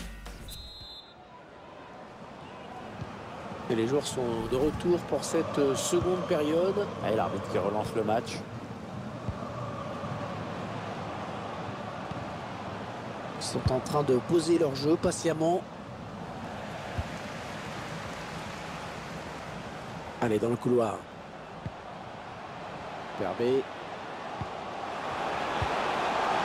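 A large stadium crowd roars steadily and swells toward the end.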